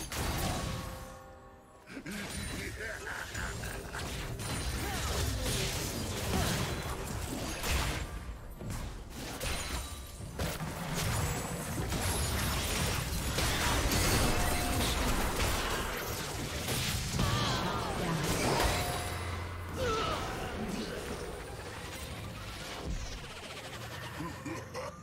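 Magic blasts and blows crash rapidly in a video game battle.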